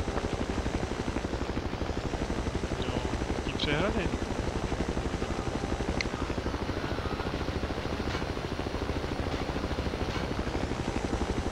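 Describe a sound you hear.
Helicopter rotor blades thump rapidly and steadily.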